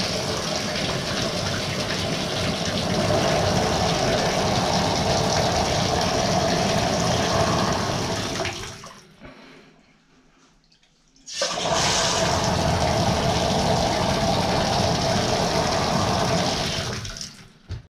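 Water pours from a tap and splashes into a bathtub, stopping briefly before flowing again.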